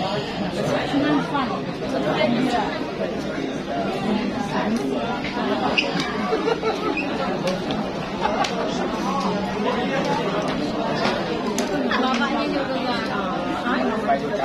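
A middle-aged woman talks and laughs close by.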